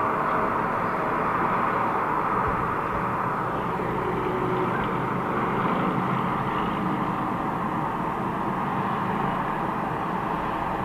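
Steady traffic roars past on a nearby highway.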